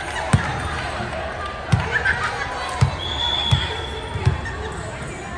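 A volleyball thuds as it bounces repeatedly on a hard floor in a large echoing hall.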